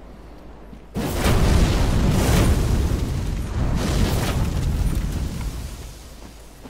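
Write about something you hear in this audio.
A burst of flames roars loudly, then dies down.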